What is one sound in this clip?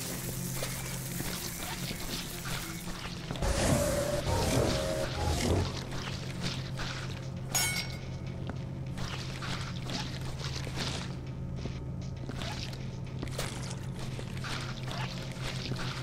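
A spray nozzle hisses in short bursts.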